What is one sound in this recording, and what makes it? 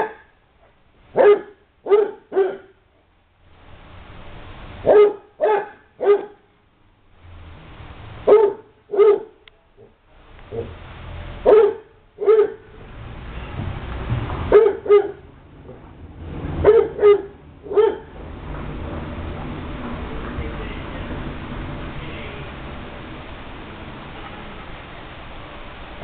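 Dogs growl and scuffle playfully.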